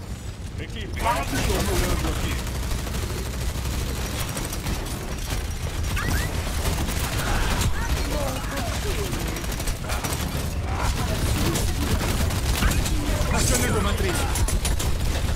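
Game guns fire in rapid bursts.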